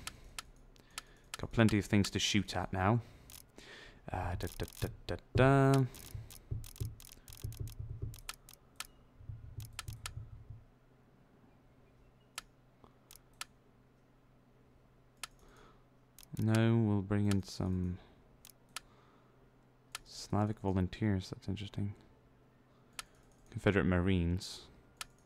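Short interface clicks sound as menu items are selected.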